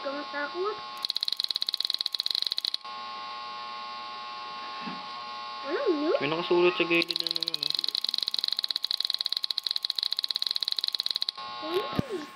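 Rapid electronic blips tick out in quick bursts.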